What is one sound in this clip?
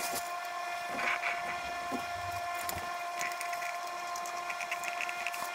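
A metal fitting scrapes and clicks as it is turned by hand.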